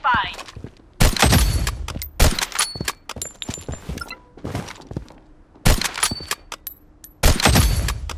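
A sniper rifle fires loud single shots, each ringing out and echoing.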